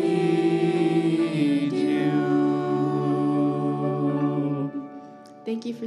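A group of young voices sings together through microphones in a large hall.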